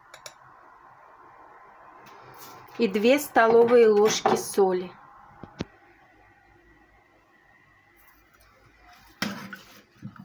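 A metal spoon clinks and scrapes against a pot.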